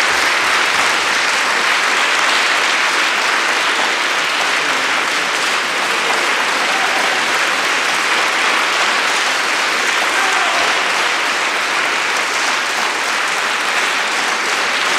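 A large audience applauds steadily in a large echoing hall.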